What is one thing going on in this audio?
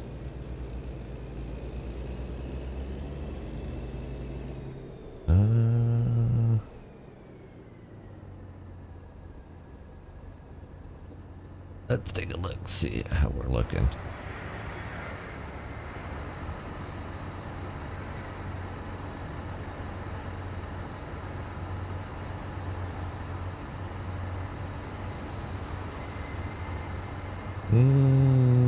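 A truck's diesel engine rumbles steadily.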